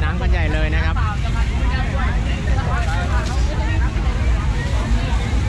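A crowd of young people chatter and shout loudly outdoors.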